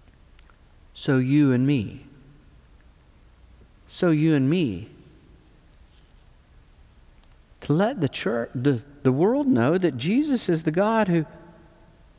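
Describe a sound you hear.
An older man speaks calmly and clearly into a close microphone, with pauses.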